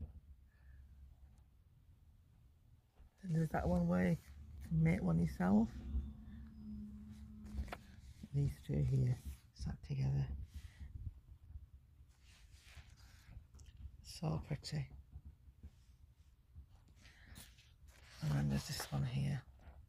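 Sheets of paper rustle as they are handled.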